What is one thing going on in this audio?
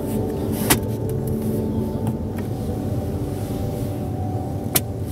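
A seat adjustment lever clicks sharply a few times.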